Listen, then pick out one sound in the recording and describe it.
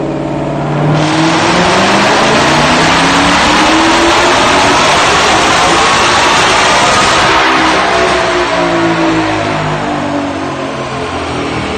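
A sports car engine roars as it revs hard, rising in pitch and then winding back down.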